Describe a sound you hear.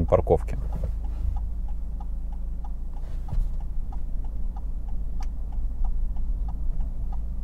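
A turn signal ticks steadily inside a car.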